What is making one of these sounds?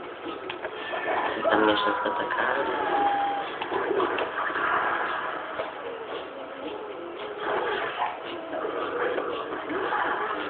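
Video game music and sound effects play from a television loudspeaker.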